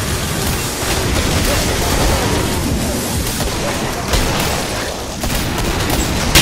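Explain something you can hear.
Explosions boom and crackle.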